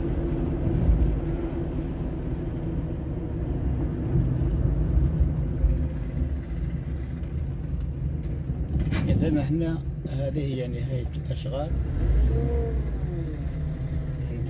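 Tyres rumble on an asphalt road.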